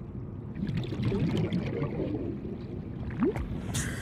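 Bubbles stream and gurgle underwater.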